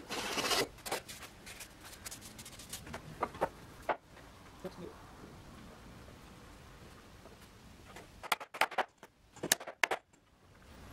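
A wooden board knocks and clatters against a workbench.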